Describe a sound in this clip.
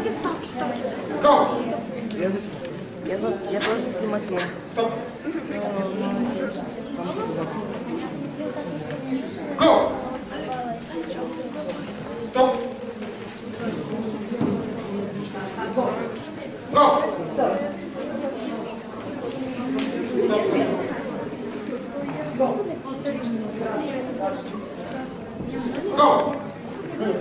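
A crowd of adults and children chatters in an echoing hall.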